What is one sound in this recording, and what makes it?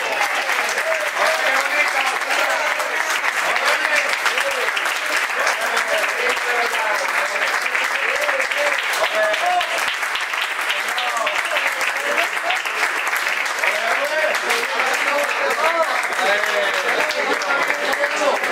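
A crowd of men and women cheers and shouts with excitement.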